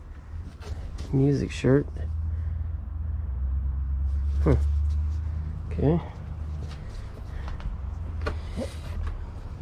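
Fabric rustles and crinkles as clothing is handled up close.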